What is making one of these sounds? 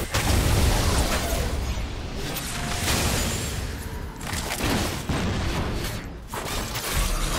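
Magic spells blast and crackle in a fantasy game battle.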